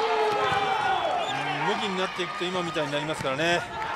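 Young men shout excitedly as they celebrate.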